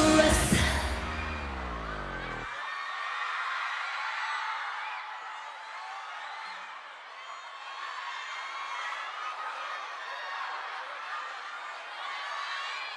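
A pop song plays loudly, its heavy beat suddenly dropping away.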